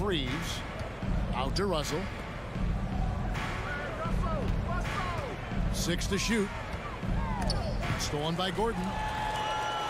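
A basketball bounces with dull rhythmic thumps.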